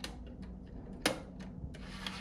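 A disc drive tray clicks shut.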